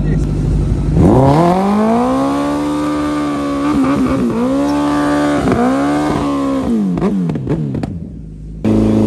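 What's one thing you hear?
A supercharged sport motorcycle revs hard during a burnout.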